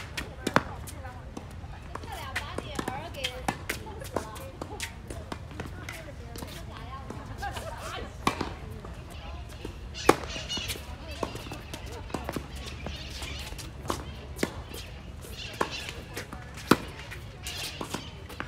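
Tennis rackets hit a ball back and forth with sharp pops.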